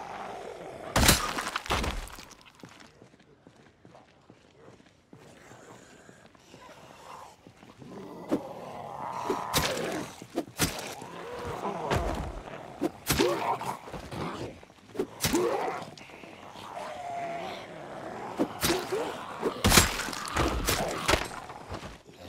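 A bat thuds against bodies in sharp, heavy blows.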